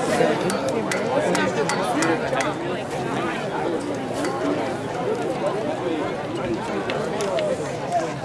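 Runners' feet patter on a track.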